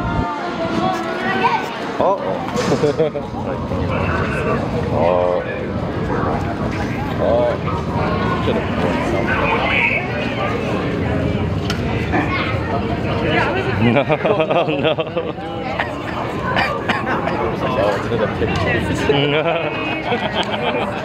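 A crowd of adults and children chatters all around, close by.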